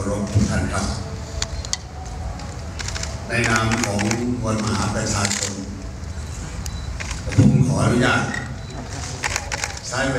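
An elderly man speaks with emphasis into a microphone.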